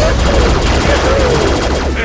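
An explosion bursts with a crackle.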